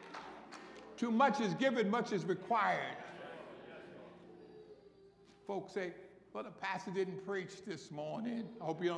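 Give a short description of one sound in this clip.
A man speaks through a microphone over loudspeakers in a large echoing hall.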